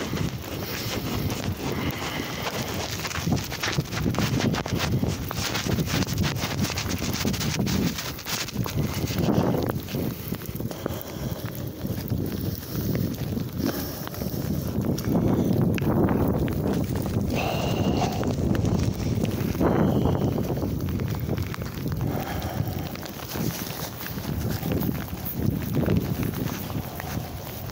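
Clothing rubs and rustles against the microphone.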